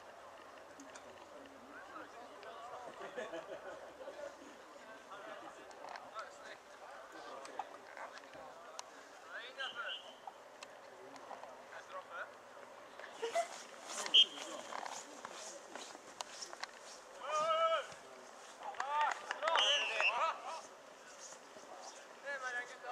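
Young men talk and laugh nearby.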